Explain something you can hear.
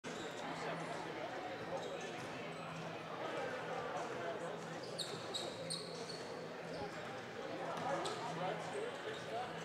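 A crowd murmurs quietly in the background.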